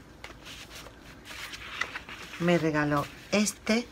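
Stiff paper sheets rustle and slide against each other.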